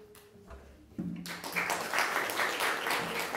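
A small string ensemble with a double bass plays live.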